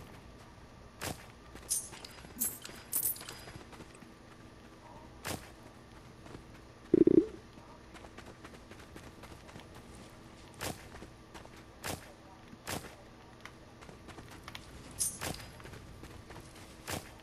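Short game chimes and pops sound as items are collected.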